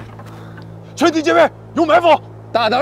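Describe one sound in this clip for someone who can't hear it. A young man shouts orders through a radio headset.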